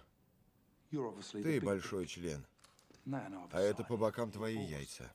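A man answers in a tense, menacing voice.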